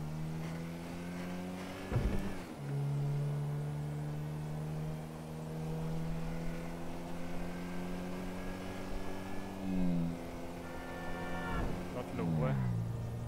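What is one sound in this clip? A car engine drones steadily and shifts pitch as it changes gear.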